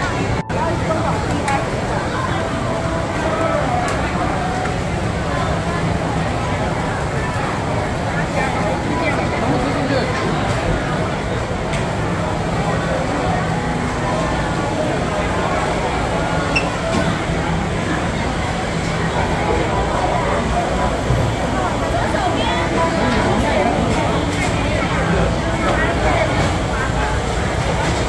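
A crowd of people chatter all around in a busy, echoing indoor hall.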